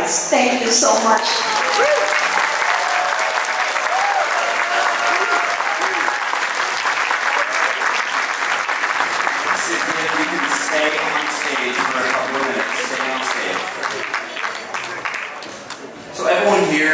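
A crowd applauds and cheers.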